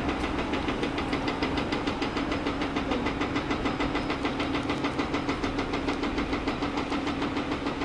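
Diesel pumps drone steadily with a rapid engine throb.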